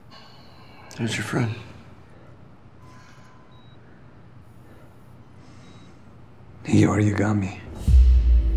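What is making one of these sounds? A man speaks with concern nearby.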